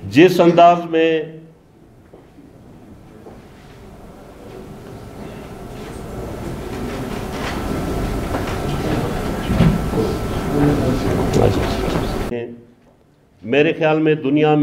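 A man speaks forcefully into a microphone through a loudspeaker.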